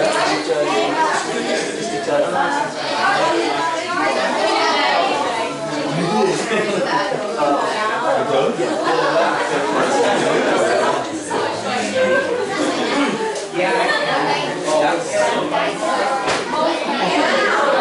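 A crowd of young people chatter and call out at once in an echoing hall.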